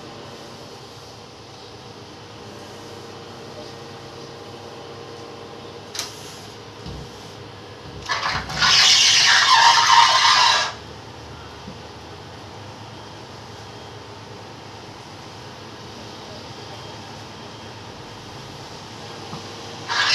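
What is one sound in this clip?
A cloth rubs against window glass.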